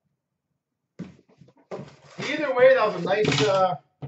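A cardboard box is handled and rustles.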